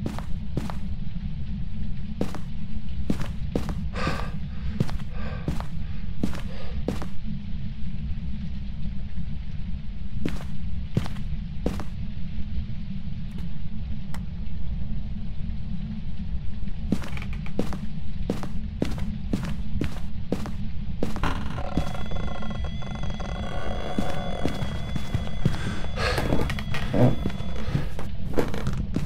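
Footsteps thud steadily across a floor.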